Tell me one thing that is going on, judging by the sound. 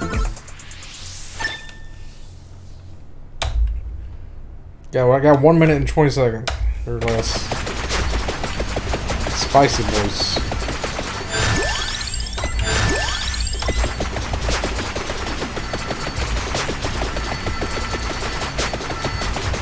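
Video game sound effects chime and crackle rapidly.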